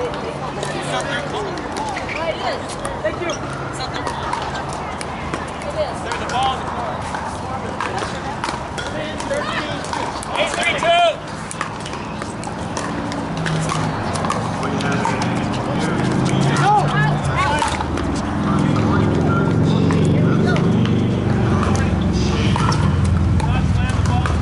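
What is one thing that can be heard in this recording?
A crowd of men and women chatter in the background outdoors.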